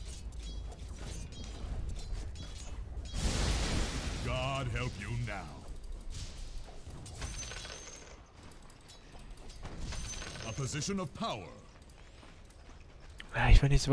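Game fight effects clash and burst.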